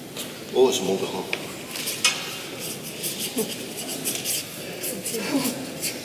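A paintbrush brushes lightly across paper.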